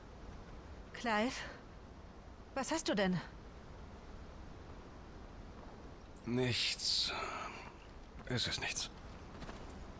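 A young man speaks calmly in short phrases.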